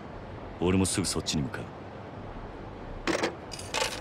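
A phone receiver clicks down onto its hook.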